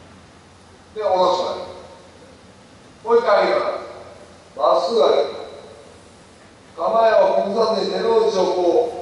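A man lets out loud, drawn-out shouts that echo through a large hall.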